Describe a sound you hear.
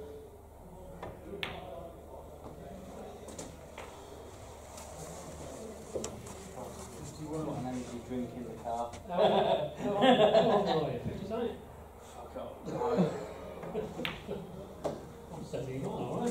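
Snooker balls knock together.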